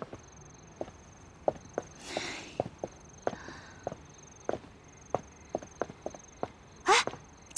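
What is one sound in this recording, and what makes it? High heels click on a hard floor.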